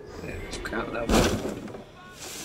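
A body lands with a heavy thump in a pile of hay.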